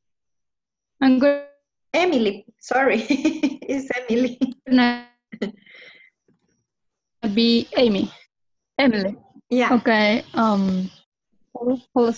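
A young woman speaks with animation over an online call.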